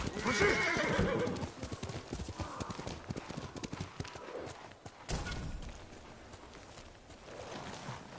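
A horse's hooves thud quickly on dirt.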